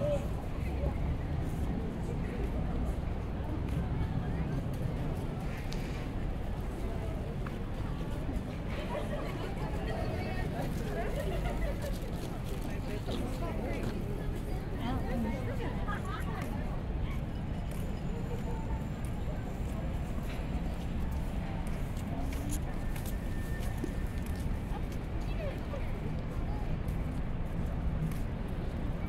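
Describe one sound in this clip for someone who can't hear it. A crowd of people chatter in the open air.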